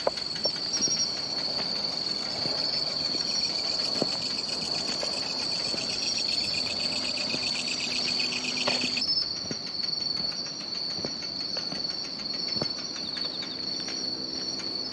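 Bicycle tyres crunch over a gravel path.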